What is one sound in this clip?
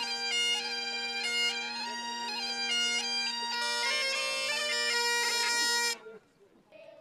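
Bagpipes play a tune over a steady drone outdoors.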